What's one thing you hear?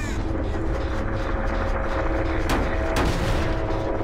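Heavy metal clanks as a machine is struck.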